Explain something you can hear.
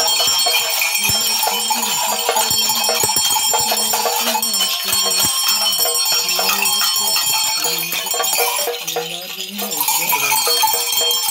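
An elderly man sings a slow tune.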